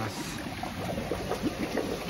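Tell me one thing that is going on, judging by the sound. Water from a hose splashes into a tank.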